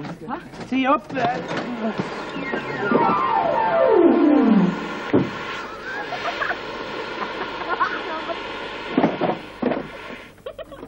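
A machine fizzes and sputters, crackling and hissing.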